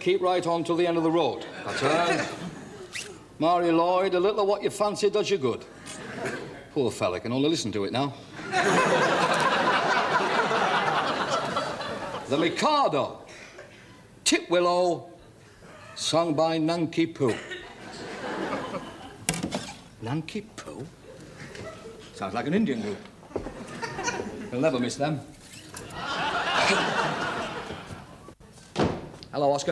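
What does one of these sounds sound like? A middle-aged man talks with animation close by.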